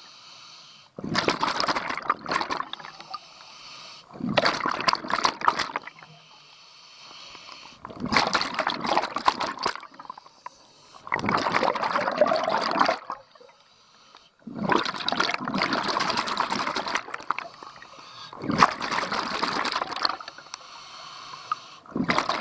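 A diver's exhaled bubbles gurgle and rumble loudly underwater in regular bursts.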